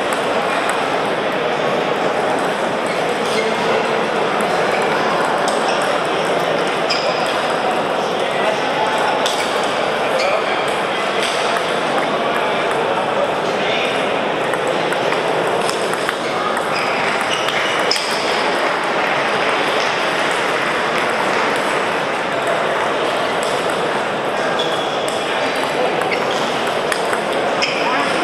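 Table tennis balls click against paddles and tables.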